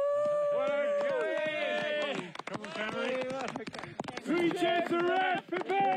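Men clap their hands.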